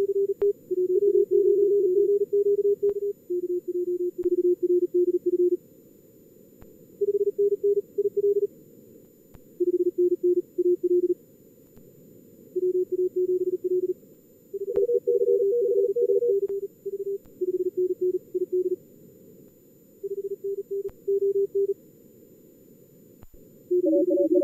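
Morse code tones beep in quick bursts, pausing between calls.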